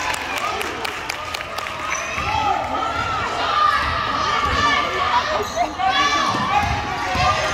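Young women call out loudly to each other across an echoing gym.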